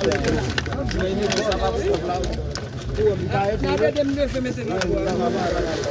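A crowd of men talk loudly over one another close by, outdoors.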